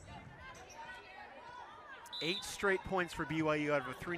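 A volleyball bounces on a wooden court floor.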